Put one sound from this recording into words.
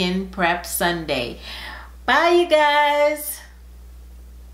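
A woman speaks cheerfully and warmly, close to a microphone.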